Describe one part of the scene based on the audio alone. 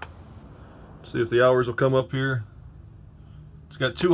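A switch clicks under a finger.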